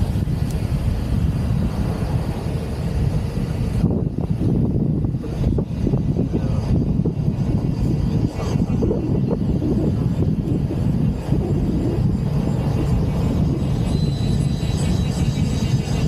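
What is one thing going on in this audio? Wind rushes loudly past an open car.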